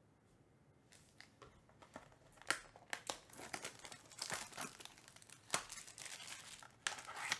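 Cellophane wrapping crinkles as it is peeled off a box.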